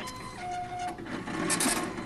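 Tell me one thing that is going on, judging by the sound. A time clock stamps a card with a mechanical clunk.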